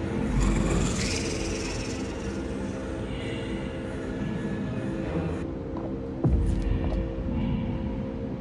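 Electricity hums and crackles inside a glowing machine.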